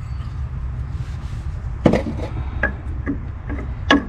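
Hands knock against metal engine parts.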